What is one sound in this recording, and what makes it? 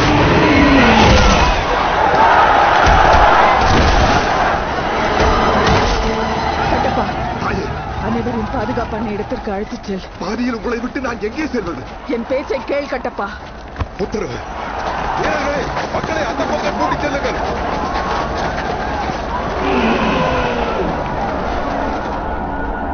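A crowd of people shouts and runs in panic.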